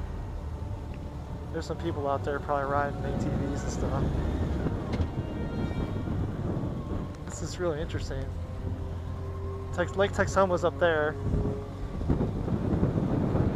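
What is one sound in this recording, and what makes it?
Wind rushes and buffets past a moving rider.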